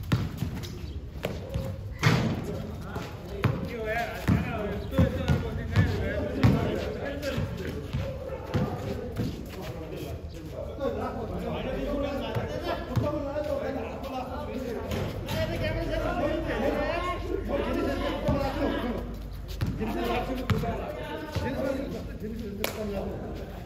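Sneakers scuff and squeak on the court.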